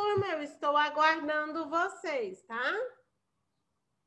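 A young girl speaks expressively, heard through an online call.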